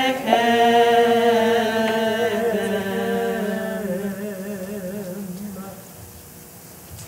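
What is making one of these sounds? A woman sings a slow melody, echoing in a large hall.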